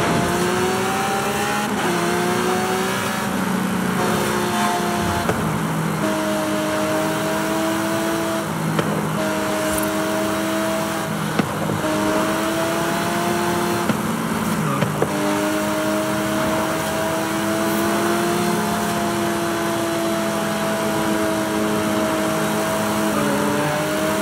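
Tyres hum steadily on an asphalt road.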